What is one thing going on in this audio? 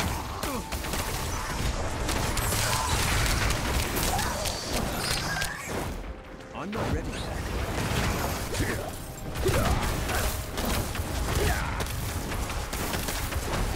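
Blades slash and strike in a fast fight.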